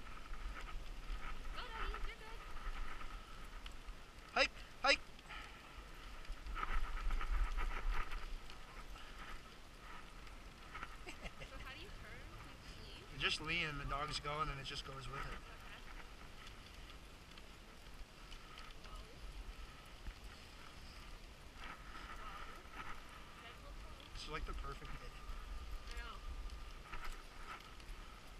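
Sled runners hiss and scrape over packed snow.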